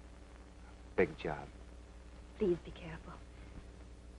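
A woman speaks softly and briefly.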